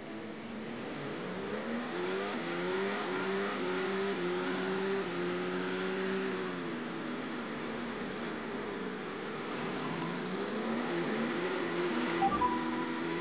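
A racing car engine screams at high revs, rising and falling in pitch as it shifts gears.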